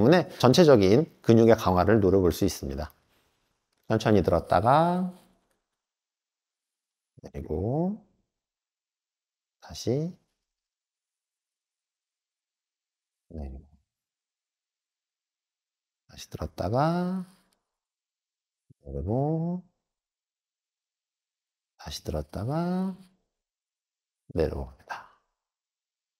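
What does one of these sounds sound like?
A man speaks calmly in short bursts, close to the microphone.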